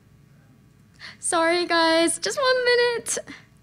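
A young woman speaks into a microphone in a high, animated voice.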